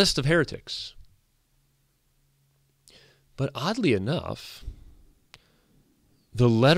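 A man speaks with animation into a close microphone, pausing between phrases.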